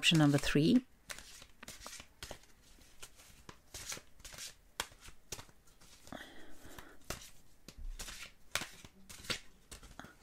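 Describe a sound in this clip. Playing cards riffle and snap as they are shuffled by hand.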